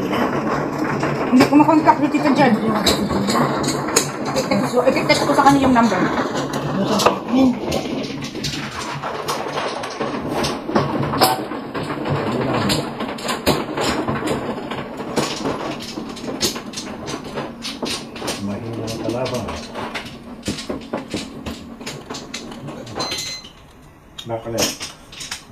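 Plastic tiles clack and click as hands shuffle and place them on a table.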